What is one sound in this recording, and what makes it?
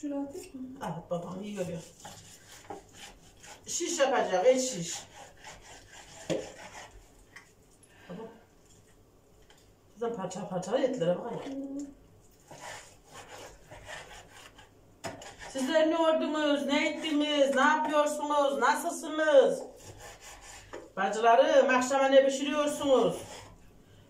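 A knife cuts meat on a board.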